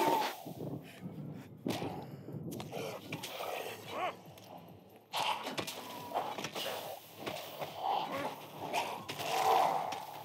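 Blows thud and squelch against flesh.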